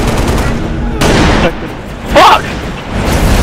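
A sniper rifle fires with loud, sharp cracks.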